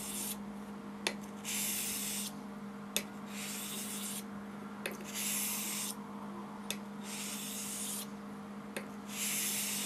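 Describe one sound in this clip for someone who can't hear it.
A razor blade taps against a whetstone.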